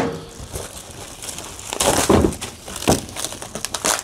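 Plastic wrapping crinkles as a man handles it.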